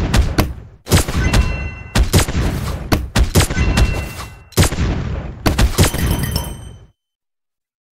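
Game weapons fire in rapid bursts of shots and impacts.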